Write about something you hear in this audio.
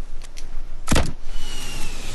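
A gun fires a sharp shot.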